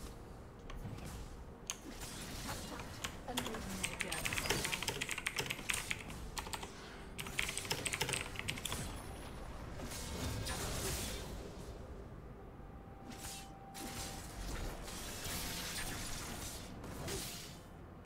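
Game combat effects clash and zap rapidly.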